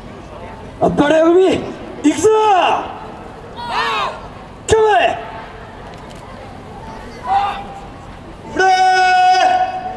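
A group of dancers shouts calls together, loud and close, with long drawn-out cries.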